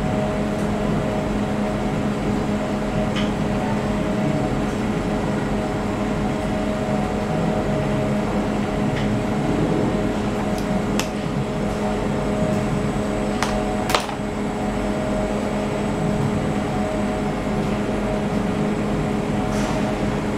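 Pieces of dough tap softly onto a metal baking tray.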